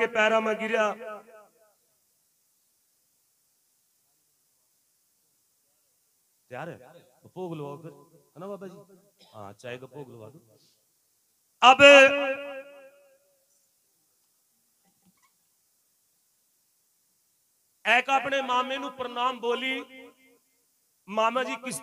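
A man sings loudly into a microphone, in bursts with pauses.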